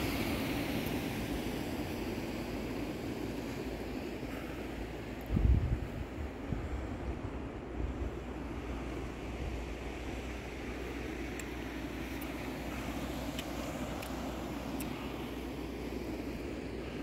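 Waves wash softly against rocks below.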